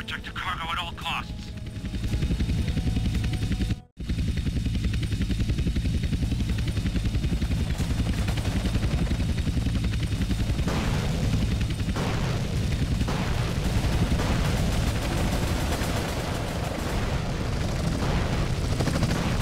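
Helicopter rotors thump steadily overhead.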